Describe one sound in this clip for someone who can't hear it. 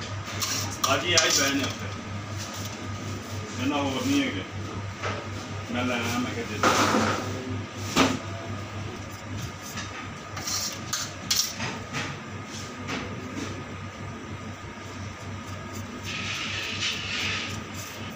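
A metal spatula scrapes softly as it spreads cream.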